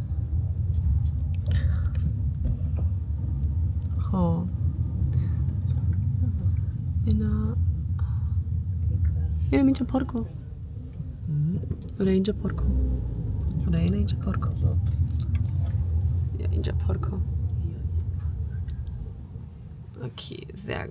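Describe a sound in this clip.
A car engine hums low and steady inside a car.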